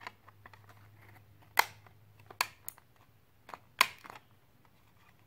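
A plastic disc case clicks and snaps as fingers handle a disc.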